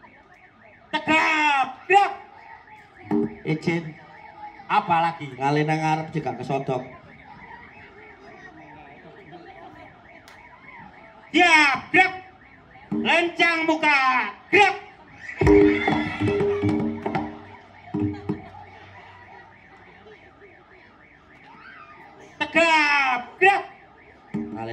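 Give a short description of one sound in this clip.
A man sings loudly through a loudspeaker.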